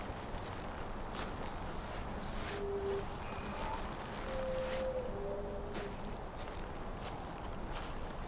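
Leafy undergrowth rustles as someone pushes through it.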